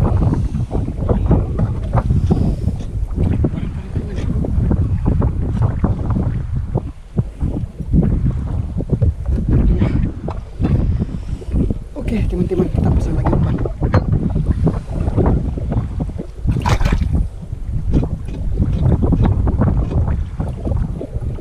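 A fishing line rustles and clicks in a man's hands.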